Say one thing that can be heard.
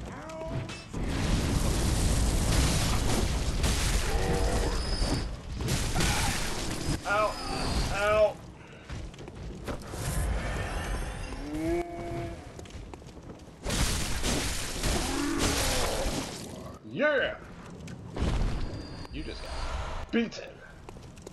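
Heavy blows and slashes strike in a fight.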